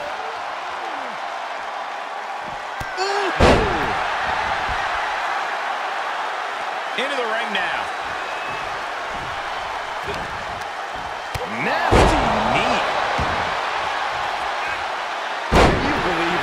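A crowd cheers and roars in an arena.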